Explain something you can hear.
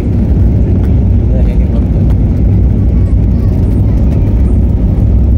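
The cabin rattles and rumbles over the runway surface.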